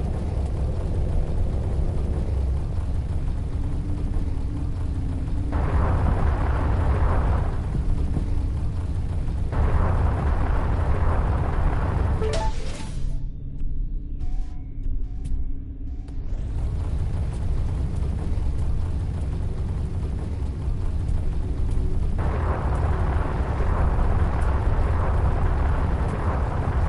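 A spaceship engine roars with a deep steady rumble.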